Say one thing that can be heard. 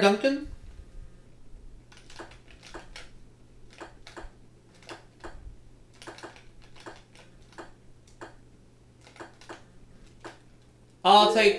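Short electronic blips tick from a video game, one after another.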